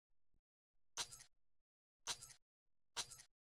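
A game menu sounds a short bright chime, three times.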